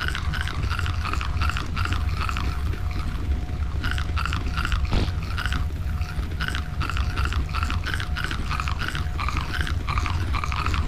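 Leaves rustle quickly and repeatedly as hands pick at bushes.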